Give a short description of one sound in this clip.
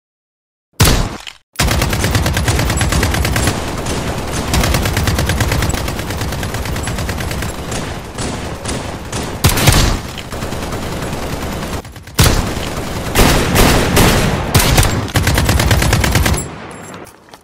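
A rifle fires in long rapid bursts.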